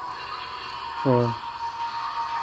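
A short, deep game tone sounds once.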